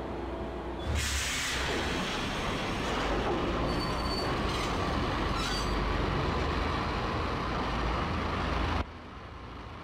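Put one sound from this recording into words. A subway train rumbles steadily.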